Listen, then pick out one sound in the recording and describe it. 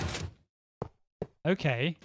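A block breaks with a short crunch.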